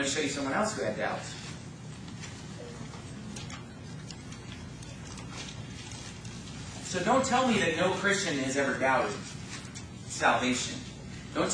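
A man speaks with animation into a microphone in an echoing room.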